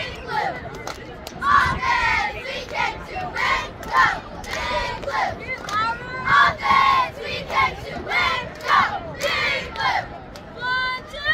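Girls chant cheers loudly in unison outdoors.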